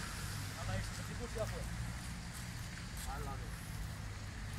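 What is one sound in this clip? Young men talk briefly outdoors.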